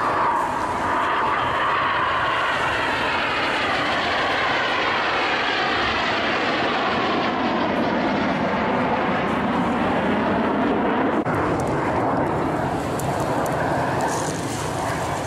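A jet engine roars loudly overhead, its pitch sweeping as the aircraft passes.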